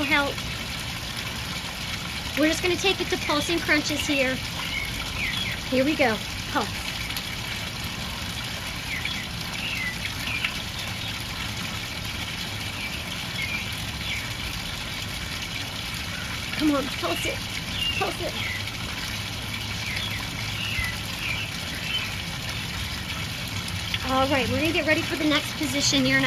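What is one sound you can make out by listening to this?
Water trickles steadily from a small fountain.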